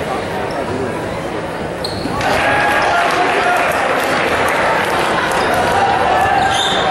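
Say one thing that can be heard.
A crowd cheers and chatters in a large echoing gym, growing louder.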